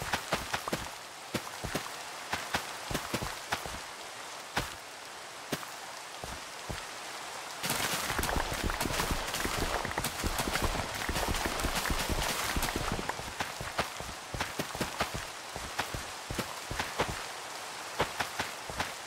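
Crops snap with quick crunching pops.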